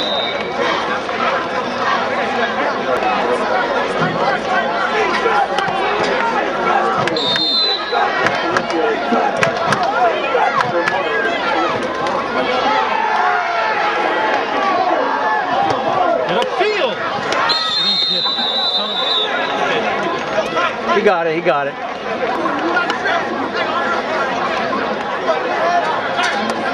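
A crowd cheers and shouts from the stands outdoors.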